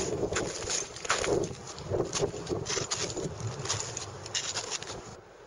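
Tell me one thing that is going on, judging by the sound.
Crampons crunch into hard snow with each step.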